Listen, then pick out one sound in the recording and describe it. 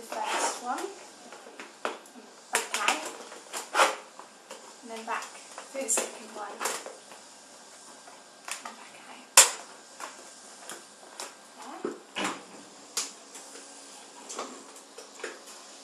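A stiff plastic sheet crinkles and crackles as it is handled.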